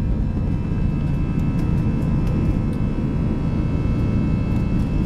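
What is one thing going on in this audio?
A jet engine roars loudly and steadily during takeoff.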